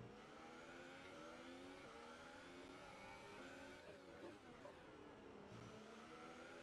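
A racing car engine whines at high revs, shifting gears as it speeds along.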